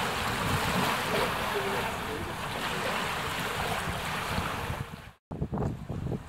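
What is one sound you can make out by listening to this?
Water splashes and gushes loudly.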